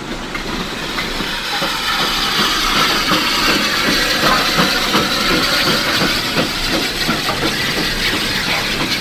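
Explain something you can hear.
A model steam locomotive rushes past close by, chuffing and hissing.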